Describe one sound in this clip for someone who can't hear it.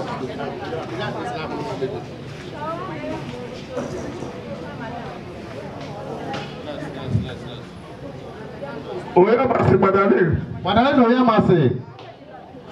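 A large crowd murmurs and chatters in the background.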